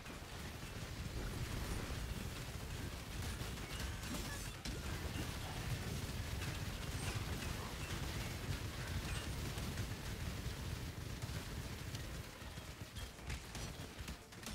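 Magic spells crackle and boom in a video game battle.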